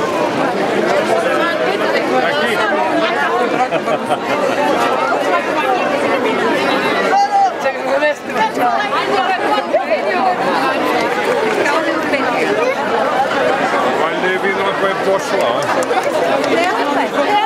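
A large crowd of young men and women chatters loudly outdoors, close by.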